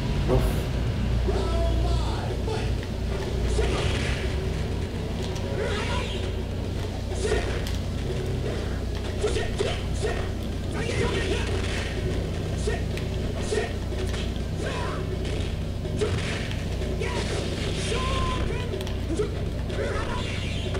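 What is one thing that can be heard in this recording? Punches and kicks land with sharp smacks in a fighting game.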